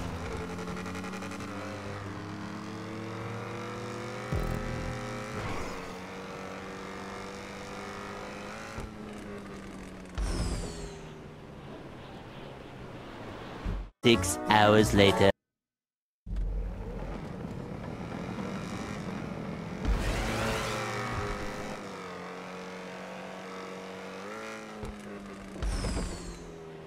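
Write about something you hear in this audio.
A sports car engine roars at speed.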